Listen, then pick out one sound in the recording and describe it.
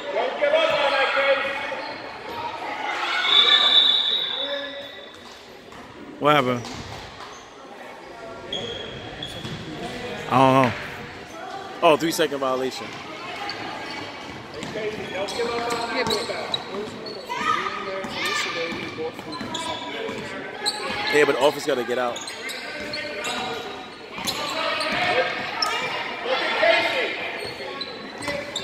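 Spectators cheer and shout in a large echoing gym.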